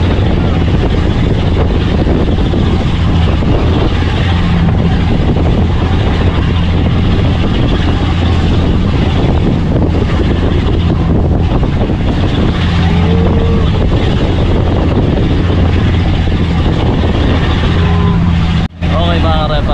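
A boat engine drones steadily.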